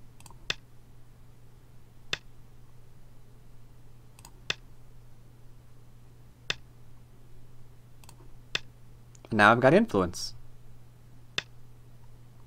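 Game stones click sharply onto a board at a steady pace.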